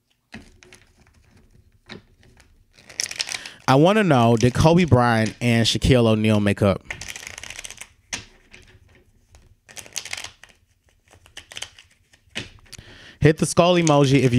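Playing cards are shuffled by hand with a soft riffling flutter.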